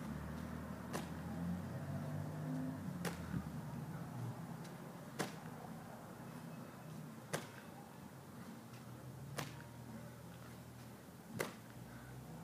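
A heavy ball thuds as it is caught again and again, at an even pace.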